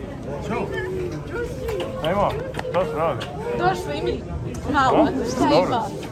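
A woman cries out excitedly.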